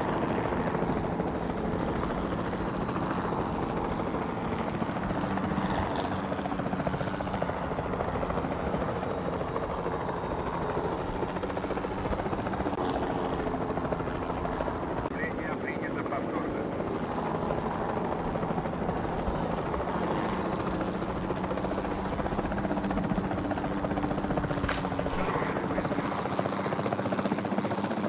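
A helicopter's rotor thumps and its engine whines steadily nearby.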